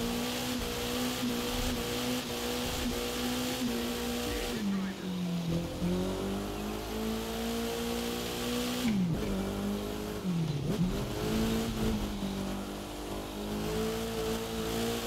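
A racing car engine roars at high revs, rising and dipping in pitch with gear changes.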